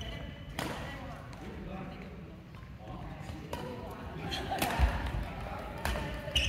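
Badminton rackets hit a shuttlecock with sharp smacks that echo around a large hall.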